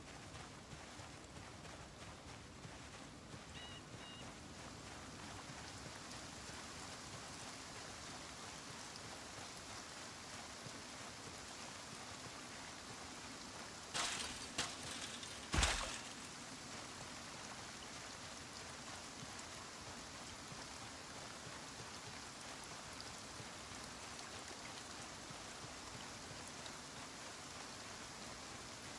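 Footsteps tread softly over grass.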